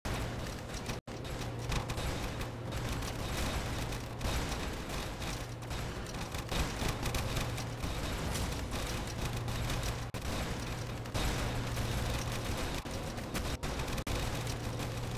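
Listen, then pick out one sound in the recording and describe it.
Rapid gunfire and explosions crackle without pause in a game battle.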